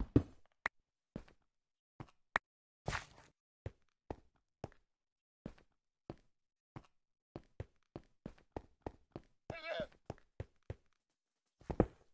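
Footsteps tap evenly on stone.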